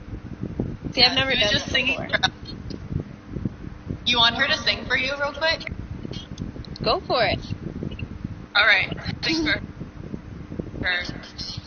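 A young woman talks animatedly over an online call.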